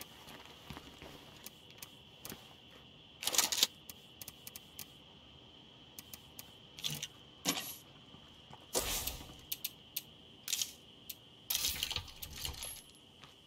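Game menu clicks and chimes sound as items are browsed.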